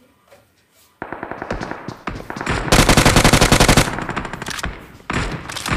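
Gunfire from a video game rattles in rapid bursts.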